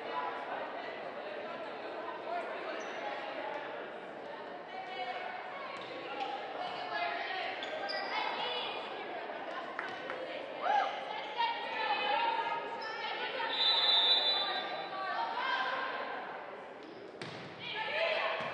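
Young women shout to each other on a court.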